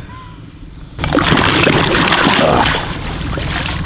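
Water splashes as a fish is lowered back into it.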